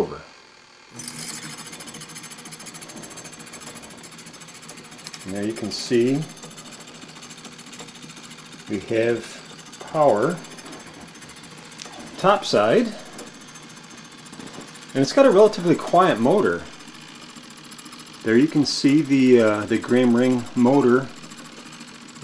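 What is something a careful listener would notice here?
An electric motor hums steadily.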